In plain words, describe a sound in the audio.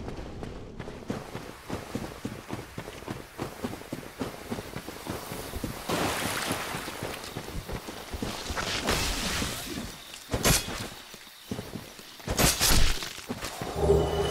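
Armoured footsteps run through undergrowth.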